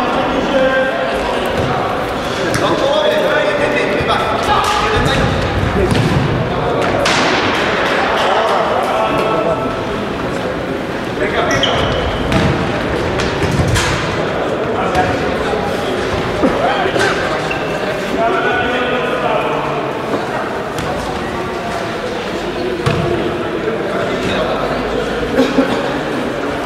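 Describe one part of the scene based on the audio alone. A ball thuds when kicked on a hard floor.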